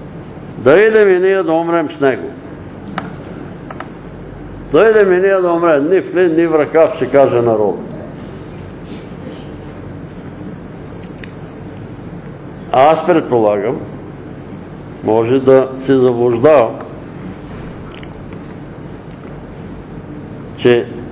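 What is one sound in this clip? An elderly man reads aloud slowly in a room with some echo, pausing between phrases.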